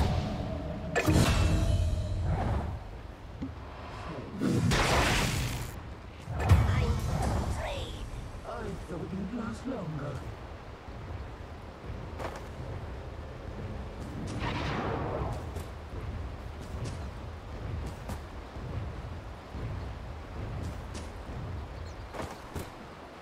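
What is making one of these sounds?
Game sound effects of spells and attacks burst and clash.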